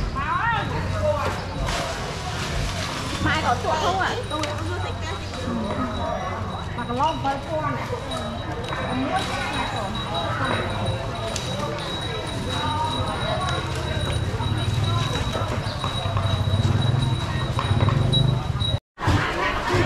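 Several adult women and men talk nearby with animation.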